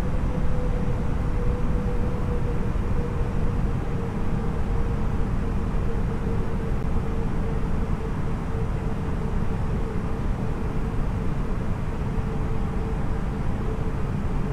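Jet engines hum steadily with a low rumble of rushing air.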